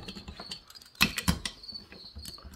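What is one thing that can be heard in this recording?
Metal parts clunk and rattle as they are handled.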